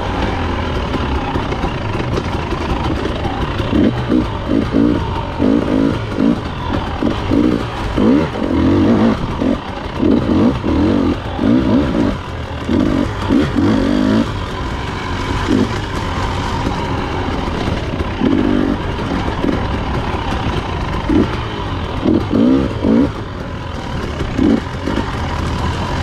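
A dirt bike engine drones steadily close by.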